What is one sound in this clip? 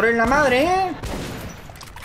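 Gunshots bang.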